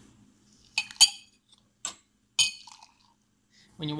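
Espresso pours and splashes into a glass.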